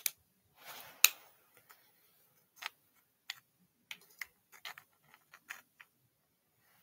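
Hard plastic clicks and rattles as it is handled close by.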